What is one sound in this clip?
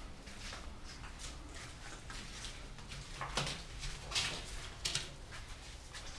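Footsteps walk along a hard floor in an echoing corridor.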